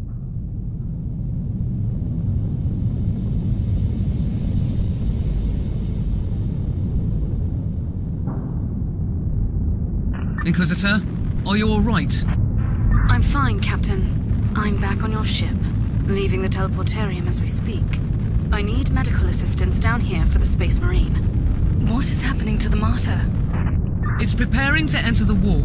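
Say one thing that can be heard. A huge starship's engines rumble deeply and steadily.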